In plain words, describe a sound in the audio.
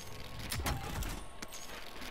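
Short clicking pickup sounds ring out as loot is grabbed.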